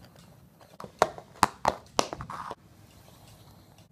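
A small toy clatters across a hard floor.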